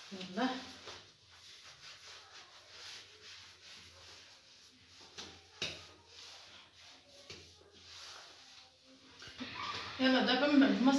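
Hands knead and pat dough in a clay dish with soft, muffled thuds.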